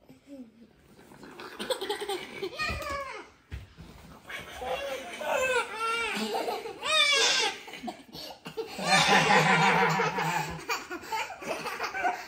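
Young girls squeal and laugh excitedly.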